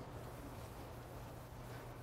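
Chalk taps on a blackboard.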